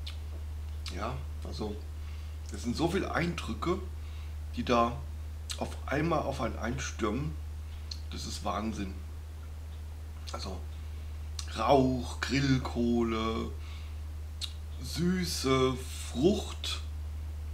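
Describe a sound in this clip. A man talks calmly and closely, with pauses.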